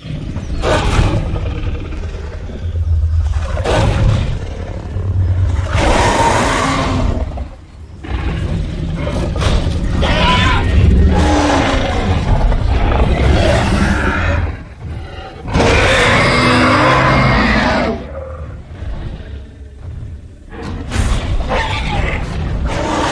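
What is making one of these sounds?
Large beasts roar and growl at each other.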